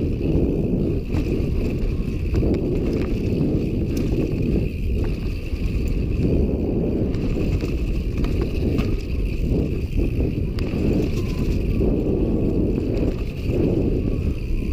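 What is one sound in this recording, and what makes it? A bicycle chain and frame rattle and clack over bumps.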